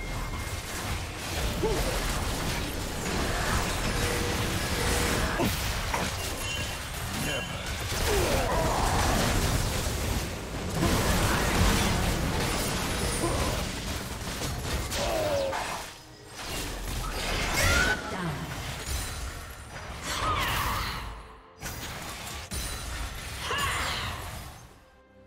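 Magic spells whoosh, crackle and burst during a fierce battle.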